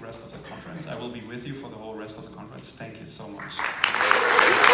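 A man speaks through a microphone to an audience in a large hall.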